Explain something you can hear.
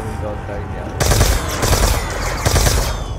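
A gun fires loud rapid bursts close by.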